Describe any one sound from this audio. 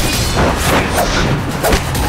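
Clothes whoosh as fighters swing and strike.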